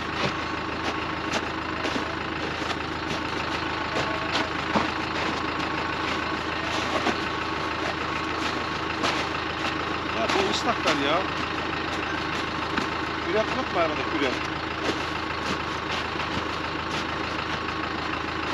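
An engine idles steadily nearby.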